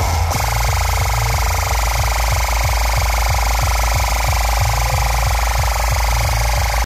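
Loud dance music plays over a sound system with a pounding bass beat.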